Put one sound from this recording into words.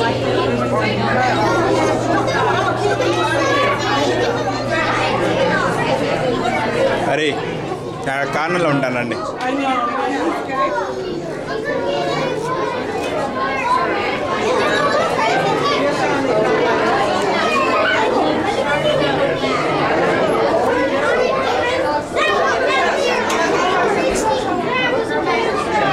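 A crowd of men, women and children chatters close by and all around.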